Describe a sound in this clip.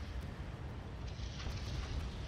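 A shell explodes with a loud boom.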